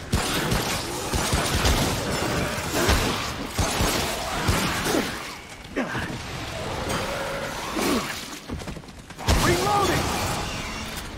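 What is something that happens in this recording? A creature shrieks and screeches.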